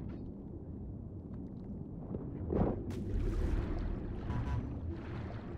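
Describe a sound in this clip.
A muffled underwater rumble of moving water goes on throughout.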